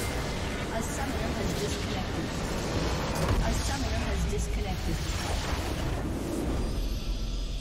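A large structure explodes with a deep, booming rumble.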